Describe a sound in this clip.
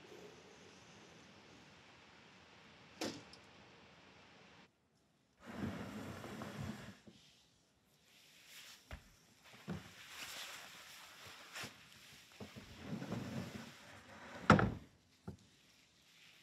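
Footsteps pad slowly across a wooden floor.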